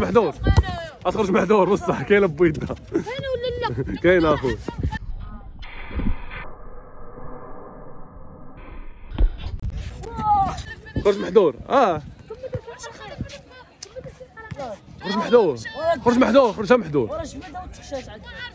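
Boys shout and talk with excitement outdoors.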